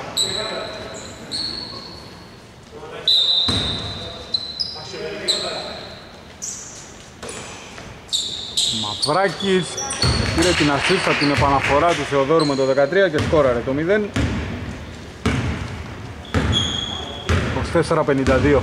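Basketballs bounce and thud on the court.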